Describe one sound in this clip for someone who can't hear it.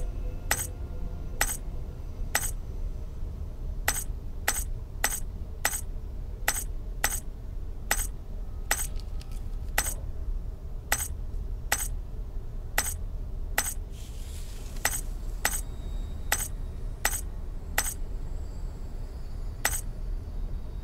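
Game tiles click sharply as they rotate, again and again.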